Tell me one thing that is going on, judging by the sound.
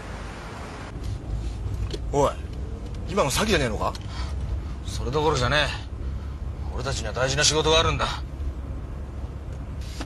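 A car engine hums low and steadily.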